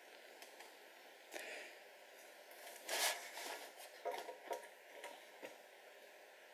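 Plastic toy figures clack and rub softly as they are handled.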